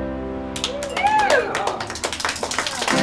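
A guitar and upright bass play a final chord that rings out.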